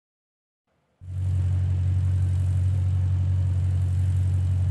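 A racing car engine idles with a deep, steady rumble.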